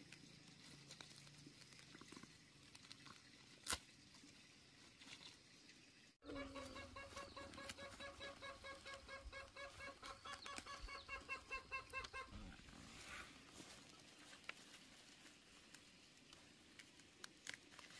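Lettuce leaves snap and rustle as they are picked by hand.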